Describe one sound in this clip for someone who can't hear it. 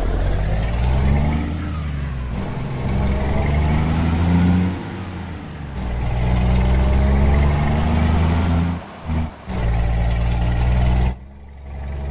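A truck engine rumbles and revs as the truck pulls away.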